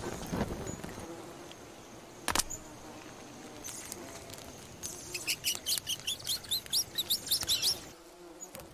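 A small fire crackles and pops.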